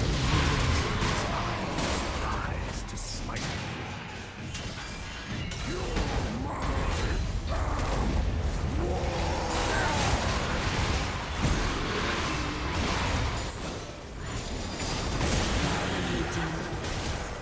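Video game spell effects whoosh and crackle during a battle.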